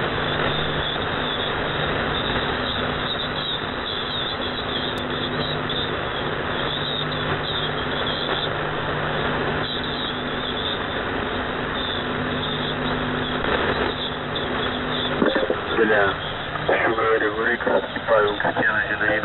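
Shortwave radio static hisses steadily.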